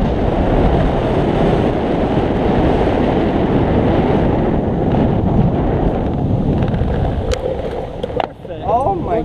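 Wind gusts loudly against the microphone outdoors.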